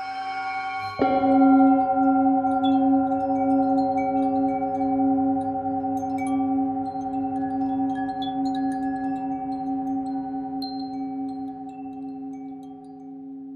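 A metal singing bowl is struck once and rings out loudly.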